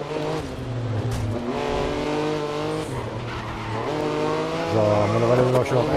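A race car engine drops in pitch as the driver brakes and shifts down.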